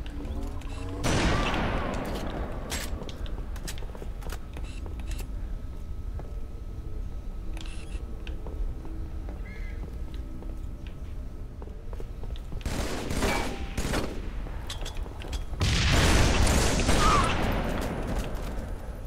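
A rifle fires loud, sharp shots that echo.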